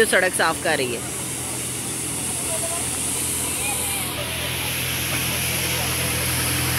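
A street sweeper's brushes whirr and scrub the pavement.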